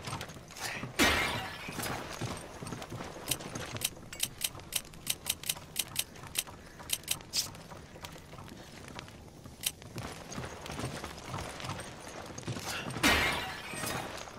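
A clay pot smashes and shatters.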